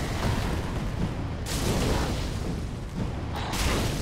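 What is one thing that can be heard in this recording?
A burst of fire whooshes.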